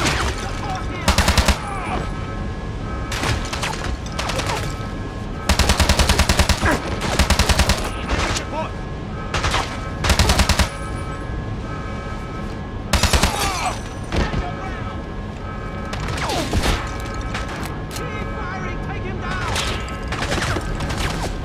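Rapid automatic gunfire rattles in short bursts.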